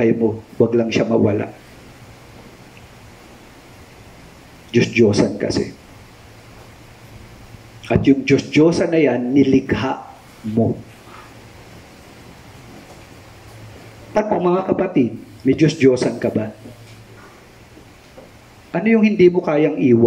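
A man speaks calmly into a headset microphone, pausing between phrases.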